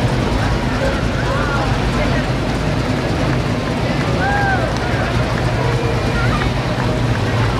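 Car engines rumble as vehicles roll slowly past.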